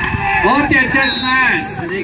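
A volleyball is spiked with a sharp slap.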